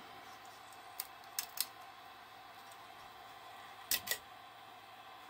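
Plastic parts click and tap as a hand handles them.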